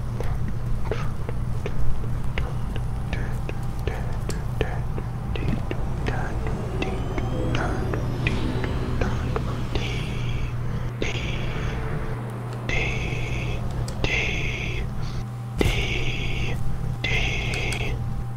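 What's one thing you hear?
Footsteps patter quickly on grass and rock.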